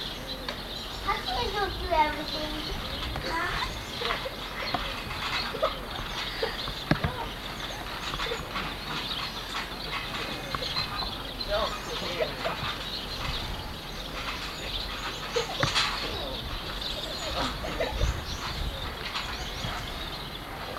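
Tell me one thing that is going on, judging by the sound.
Children shout and laugh nearby.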